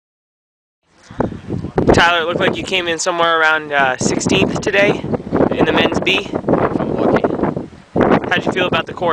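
A young man speaks calmly, close by, outdoors.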